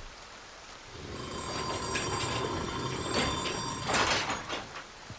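A metal mechanism clicks and whirs as it turns.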